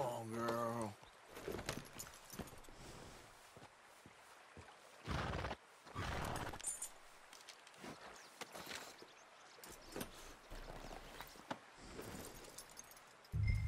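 A horse's hooves clop on stony ground.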